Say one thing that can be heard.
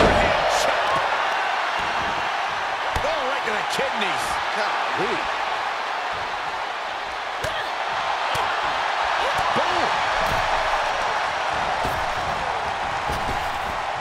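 A large crowd roars and cheers steadily.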